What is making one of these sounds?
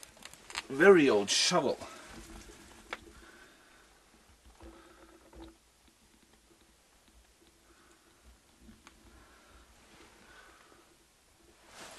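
A shovel scrapes through loose dirt and rubble.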